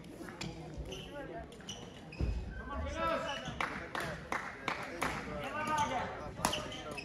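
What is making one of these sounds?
Sports shoes squeak sharply on a hall floor.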